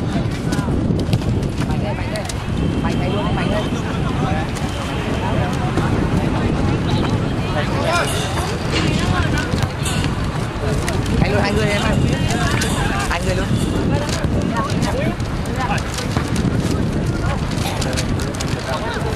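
A crowd of young men chatters and shouts nearby outdoors.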